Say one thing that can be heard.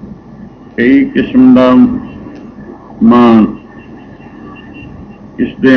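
An elderly man sings into a microphone.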